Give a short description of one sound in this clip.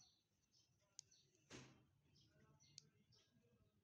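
A plastic jar clicks and knocks softly as a hand turns it.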